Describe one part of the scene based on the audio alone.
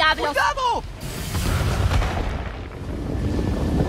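An explosion booms with crackling debris.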